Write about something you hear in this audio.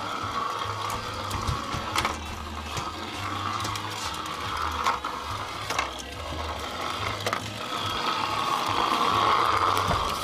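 A small robot hums and whirs steadily as it rolls across a tile floor.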